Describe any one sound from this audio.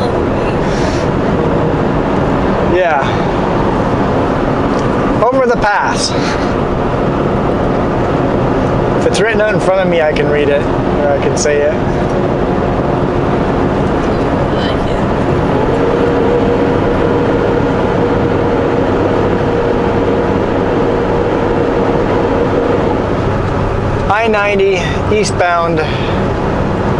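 A car's engine hums and its tyres roar steadily on the road from inside the car.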